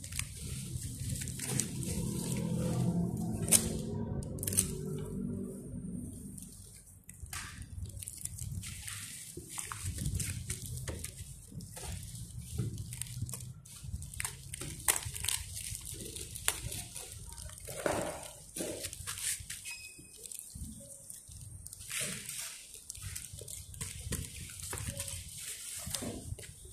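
A plastic bubble mailer crinkles and rustles as hands handle it.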